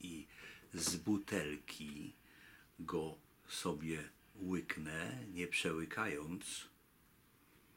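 A middle-aged man talks calmly, close to the microphone.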